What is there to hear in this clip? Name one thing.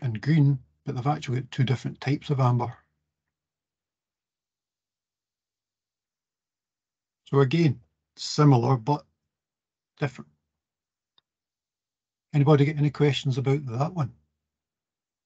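A middle-aged man speaks calmly over an online call, in short bursts with pauses.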